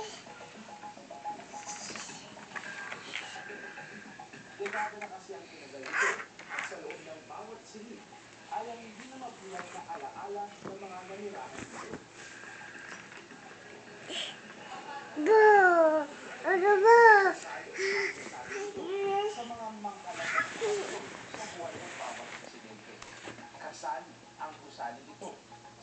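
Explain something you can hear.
A toddler babbles close by.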